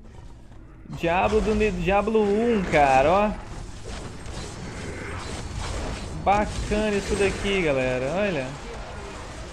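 A young man talks with animation into a headset microphone, close up.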